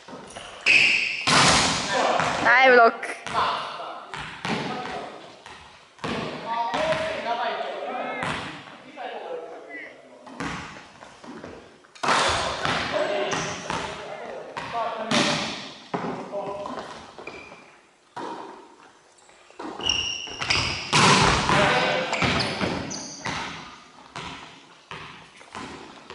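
A volleyball is smacked hard, with the hits echoing in a large hall.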